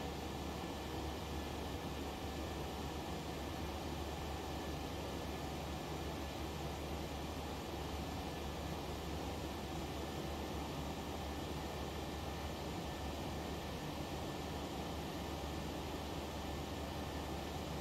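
A jet engine hums steadily inside a cockpit.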